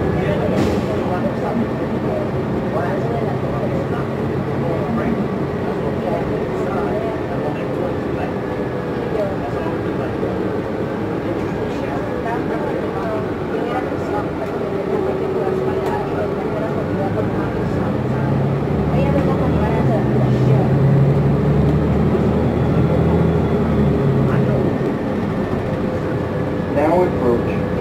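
A bus rattles and rumbles as it drives along the road.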